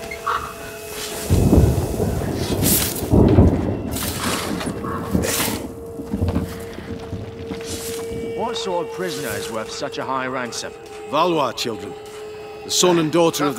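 Footsteps crunch on loose gravel and stones.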